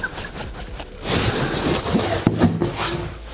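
A blade slices through packing tape on cardboard.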